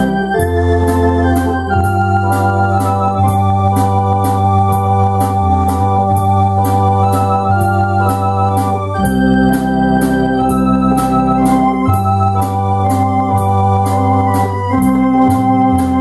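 An electronic keyboard plays a tune over a steady drum beat and bass.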